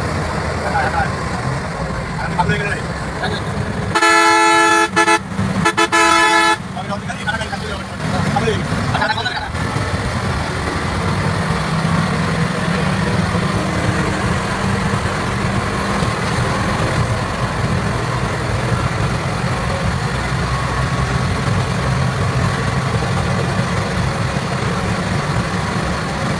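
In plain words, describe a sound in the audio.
A vehicle engine rumbles steadily with road noise while driving fast.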